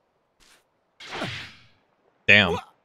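A loud energy blast whooshes.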